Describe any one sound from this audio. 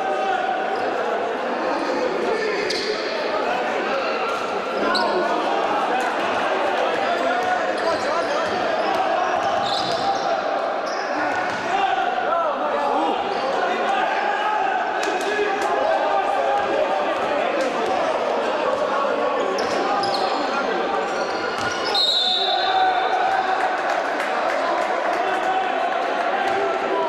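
A crowd in a large echoing hall chatters and cheers throughout.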